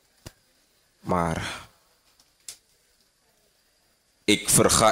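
A man speaks loudly into a microphone, performing with feeling.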